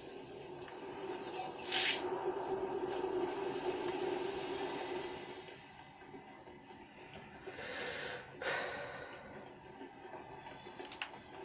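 A rushing wind sound from a video game plays through a television speaker.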